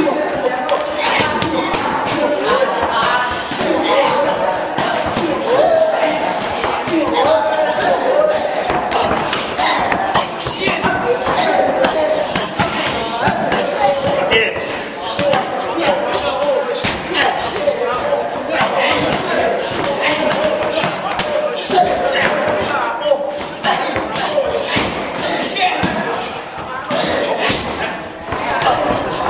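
Punches and kicks thud sharply against padded mitts, many times.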